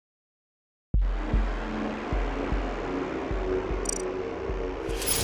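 Triumphant game music plays loudly.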